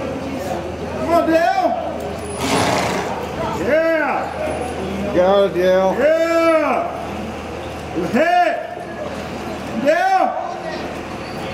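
Cattle moo and bawl loudly, again and again.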